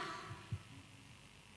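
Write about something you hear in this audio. A young woman speaks through a microphone in a large echoing hall.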